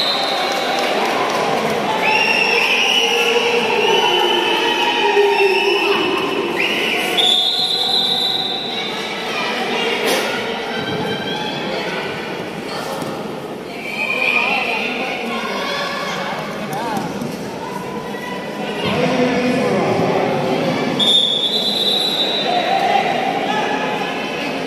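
Young women shout and cheer loudly in a large echoing hall.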